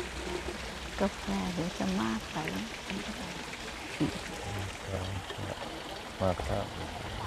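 Adults talk quietly among a gathered crowd outdoors.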